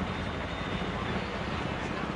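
A guitar is strummed nearby.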